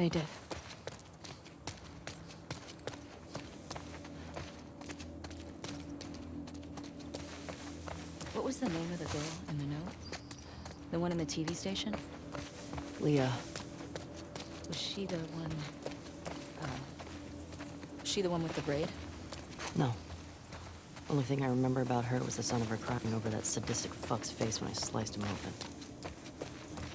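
Footsteps walk steadily over pavement and through tall grass.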